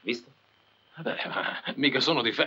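A man speaks with a mocking tone, close by.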